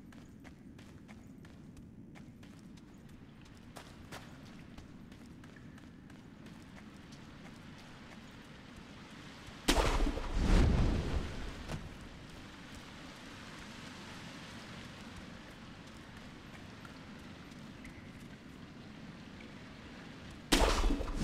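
Rain falls steadily all around.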